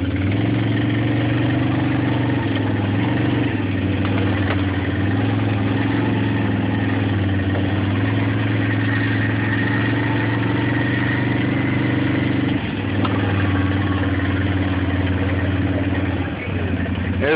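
An engine hums steadily as a small off-road vehicle drives along.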